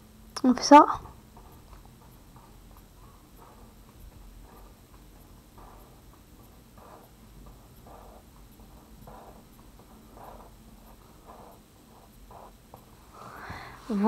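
A pencil scratches on paper in short, quick strokes.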